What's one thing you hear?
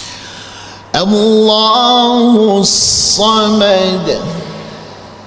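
A man sings a long, wavering melody into a microphone, in a hall with some echo.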